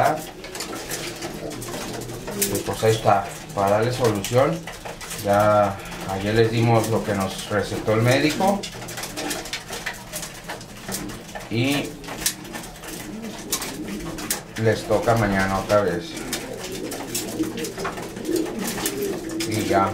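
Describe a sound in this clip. Pigeons peck rapidly at grain on a hard tray.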